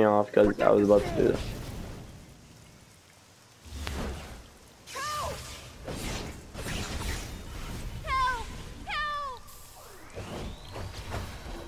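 Blows land with sharp thuds in a fight.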